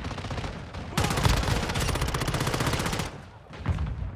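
An automatic rifle fires in rapid bursts in a video game.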